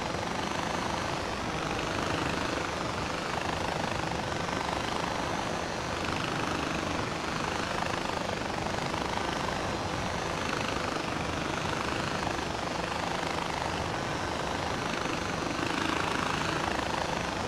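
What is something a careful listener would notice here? A zipline trolley whirs steadily along a cable.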